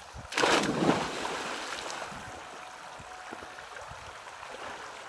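Water sloshes and churns in a pool.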